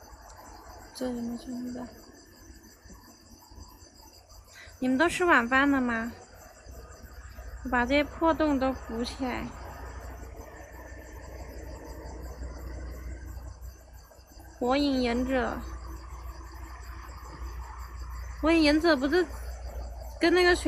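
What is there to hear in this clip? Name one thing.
A young woman speaks close by in short bursts.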